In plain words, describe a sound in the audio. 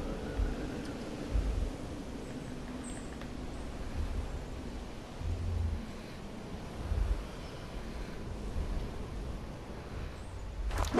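Wind rushes steadily past a falling glider, with deep gusts now and then.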